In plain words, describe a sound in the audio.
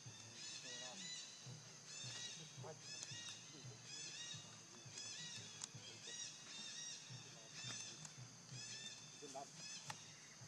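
A baby monkey squeaks and cries in short high calls.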